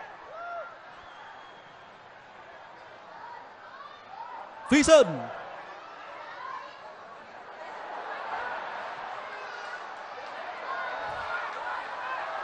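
A stadium crowd murmurs and cheers, growing louder.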